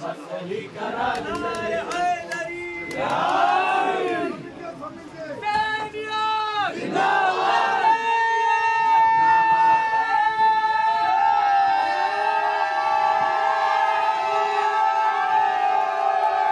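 Men chant loudly together.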